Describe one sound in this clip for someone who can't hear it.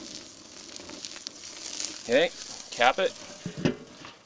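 A metal grill lid clanks shut.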